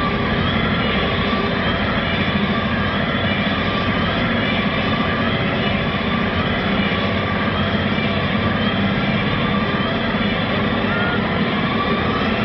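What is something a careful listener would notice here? Loud live music plays through big speakers in a large echoing hall, heard distorted from within the crowd.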